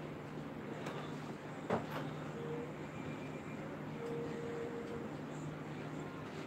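A range hood fan hums steadily.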